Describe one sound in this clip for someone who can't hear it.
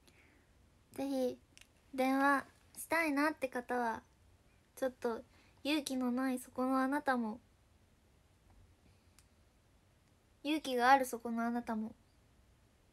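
A young woman speaks softly and close up, in short bursts with pauses.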